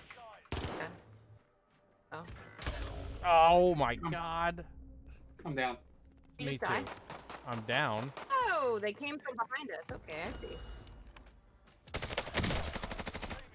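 Gunfire rattles in rapid bursts from a video game.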